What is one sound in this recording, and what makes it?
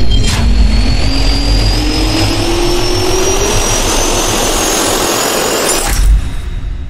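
A jet engine spins up with a loud roar and a rising whine.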